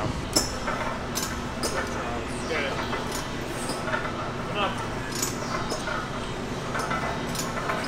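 A cable machine's weights clank as a man pulls down on it.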